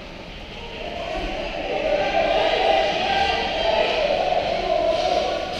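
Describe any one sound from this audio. Ice skates scrape on the ice nearby.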